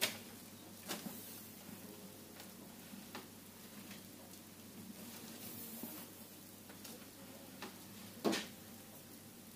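Terry towels rustle as they are flipped over and laid down.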